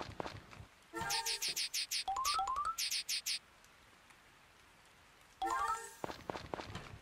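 Short bright menu chimes blip in quick runs.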